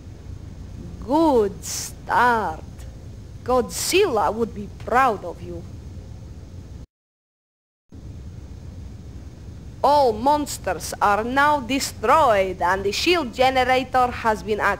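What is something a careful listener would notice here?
A woman speaks calmly over a radio.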